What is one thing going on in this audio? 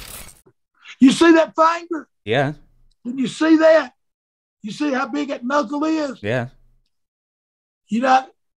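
An elderly man speaks with animation, close to a microphone.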